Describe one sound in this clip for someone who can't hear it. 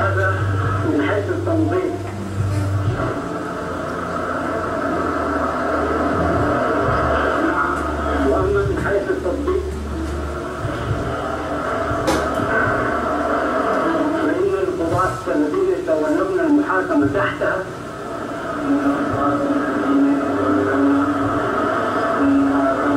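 A man speaks steadily into a microphone, heard through a loudspeaker.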